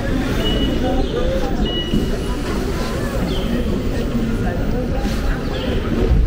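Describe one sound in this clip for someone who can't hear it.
A tram rolls along a street nearby.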